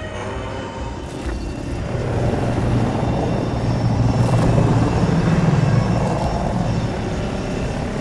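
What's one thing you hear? An aircraft engine roars and rumbles.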